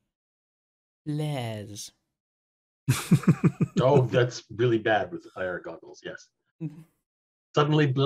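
Several men talk and laugh with animation over an online call.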